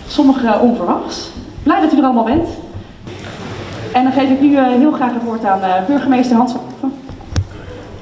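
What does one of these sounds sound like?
A woman sings through a microphone in an echoing hall.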